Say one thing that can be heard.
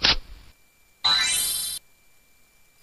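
A bright twinkling chime plays.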